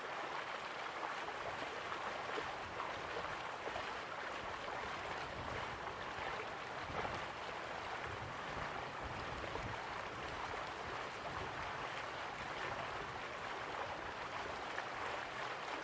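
Water from a waterfall rushes steadily.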